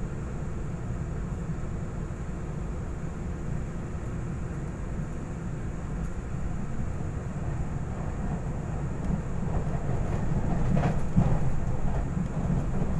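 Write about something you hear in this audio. A train carriage rumbles steadily along the tracks.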